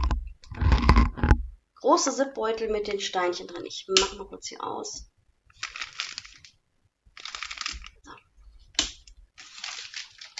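A plastic bag crinkles in a woman's hands.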